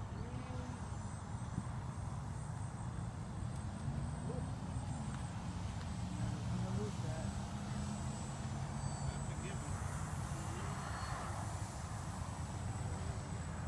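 A small model plane's motor whines faintly overhead.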